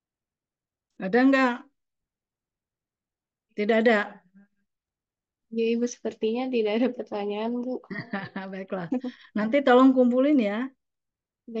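A woman speaks over an online call.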